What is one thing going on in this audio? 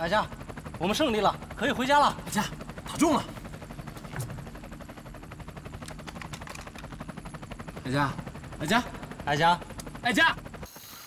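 A young man speaks with emotion, his voice breaking.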